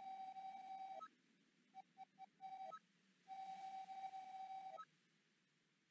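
A soft chime sounds as each line of game text finishes.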